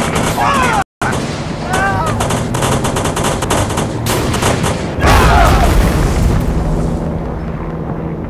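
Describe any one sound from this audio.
Gunfire rattles rapidly in a video game.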